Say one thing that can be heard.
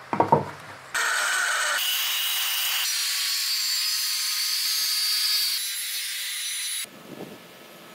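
A circular saw cuts through hardwood boards.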